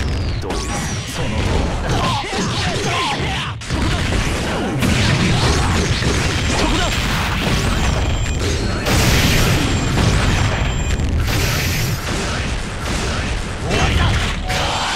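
Punches and kicks land with sharp, rapid impacts.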